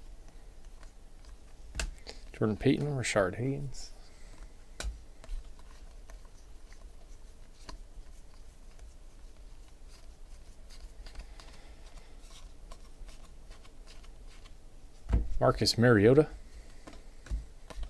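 Trading cards flick and rustle as they are sorted by hand.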